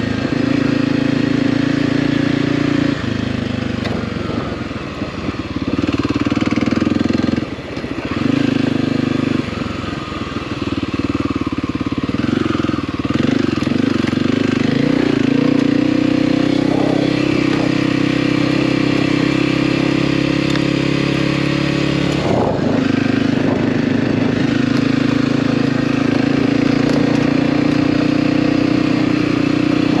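Tyres crunch over dry dirt and gravel.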